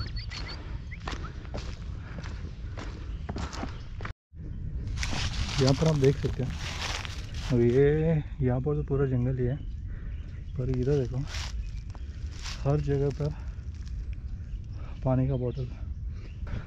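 Dry leaves crunch underfoot as someone walks.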